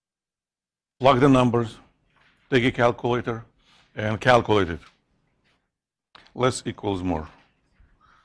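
A man speaks calmly into a microphone, in short bursts with pauses.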